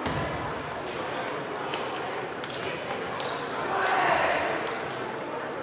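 Sports shoes squeak on a hard floor.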